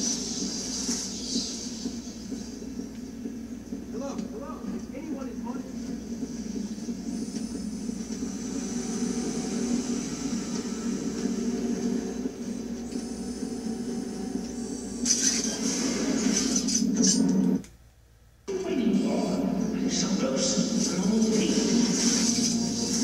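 Music and sound effects from a video game play through television speakers.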